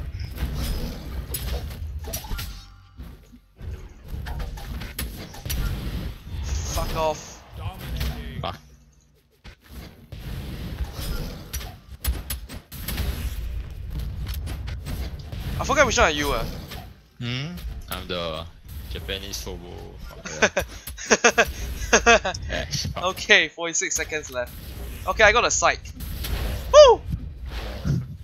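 Fighting game sound effects of hits, whooshes and blasts go on throughout.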